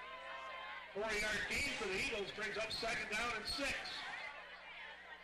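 Young men shout and cheer loudly close by.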